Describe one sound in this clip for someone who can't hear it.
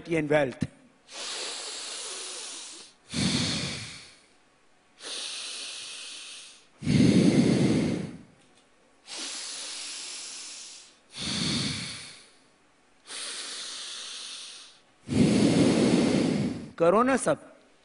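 A man breathes forcefully in and out through his nose into a microphone, in long slow rounds.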